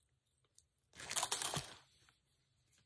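A metal chain rattles softly in a woman's hands.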